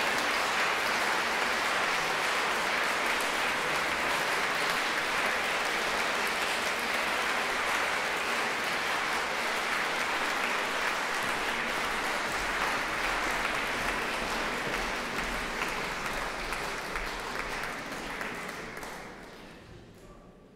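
An audience applauds steadily in a large echoing hall, then the applause fades away.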